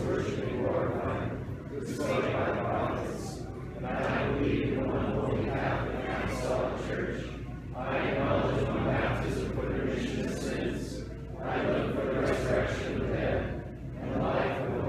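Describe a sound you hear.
A man chants prayers in a steady voice that echoes through a large hall.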